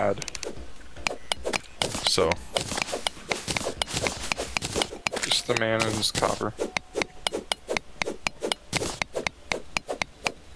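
A pickaxe chips at stone in quick, repeated strikes.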